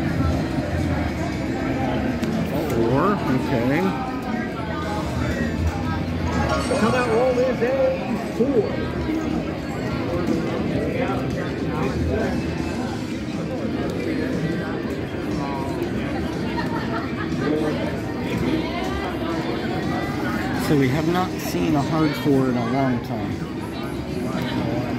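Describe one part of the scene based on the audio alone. A gaming machine plays electronic jingles and chimes.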